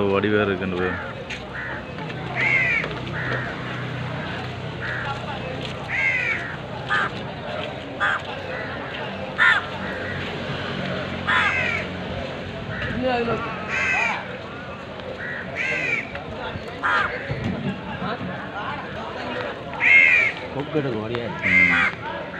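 Crows caw repeatedly nearby.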